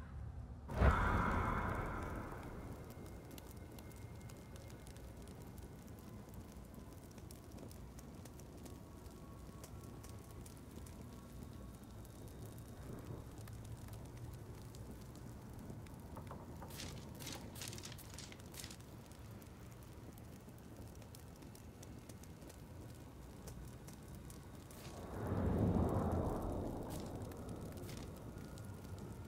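A steady low magical hum drones throughout.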